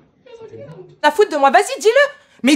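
A woman speaks close up, angrily and with force.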